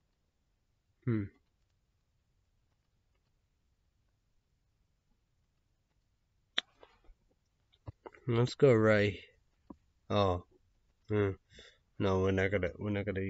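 A young man speaks calmly and close up, in short bursts with pauses.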